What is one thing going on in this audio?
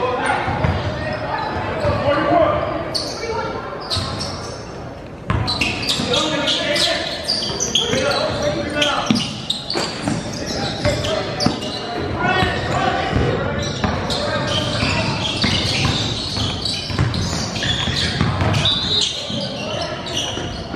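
Young players shout and call out across an echoing gym.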